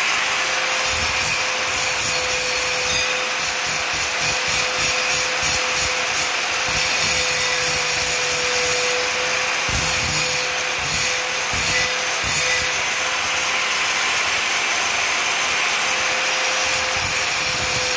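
An angle grinder whines loudly and steadily as it cuts.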